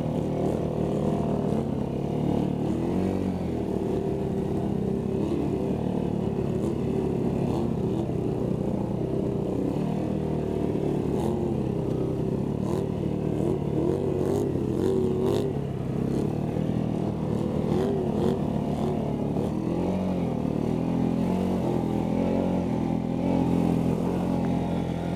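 Muddy water splashes and sprays under spinning tyres.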